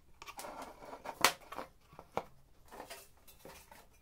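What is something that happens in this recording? A hollow plastic canister knocks down onto a wooden board.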